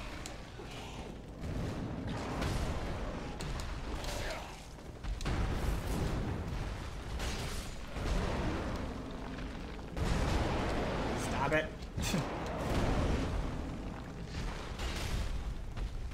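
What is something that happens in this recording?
Swords clang against the monster.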